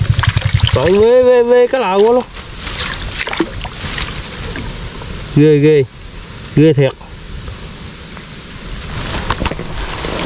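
Water splashes as a hand moves a trap in a shallow stream.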